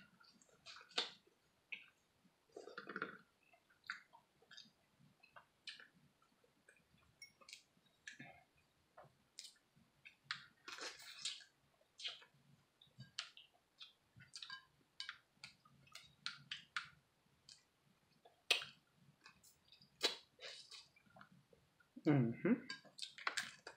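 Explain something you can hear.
Crab shells crack and snap between a woman's fingers.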